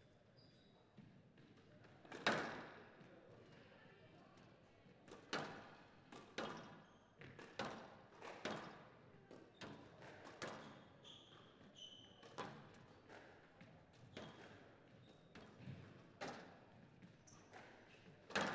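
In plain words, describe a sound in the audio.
Shoes squeak on a court floor.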